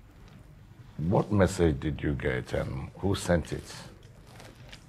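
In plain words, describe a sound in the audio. An elderly man speaks calmly and deliberately.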